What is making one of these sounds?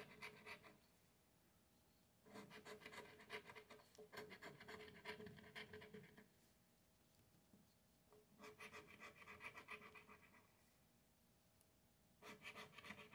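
A coin scratches rapidly across a paper ticket in short bursts.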